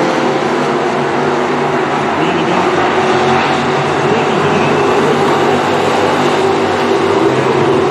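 Several race car engines roar loudly around a dirt track.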